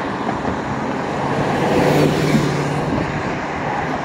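A van drives past close by with a loud engine hum.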